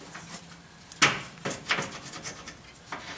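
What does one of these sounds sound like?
Metal parts clink lightly as they are handled.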